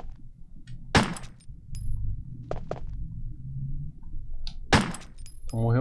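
A handgun fires loud, sharp shots.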